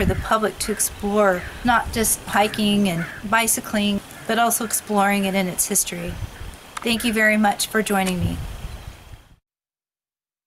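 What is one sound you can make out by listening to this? A woman talks with animation, heard through an online call.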